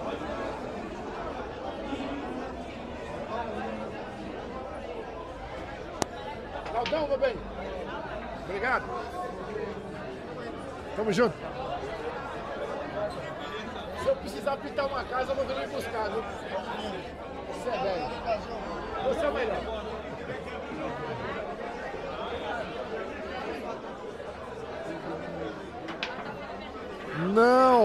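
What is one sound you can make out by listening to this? A crowd of men chatters and murmurs nearby.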